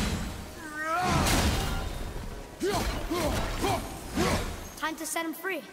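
An axe strikes hard with heavy thuds.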